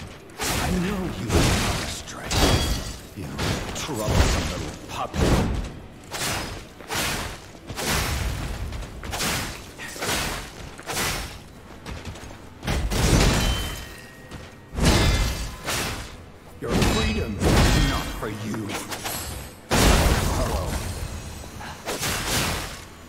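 Heavy thuds and impacts hit the ground.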